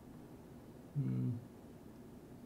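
A man says a few short words close to a microphone.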